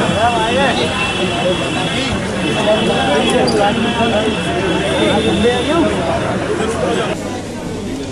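A crowd of men talk and shout over each other outdoors.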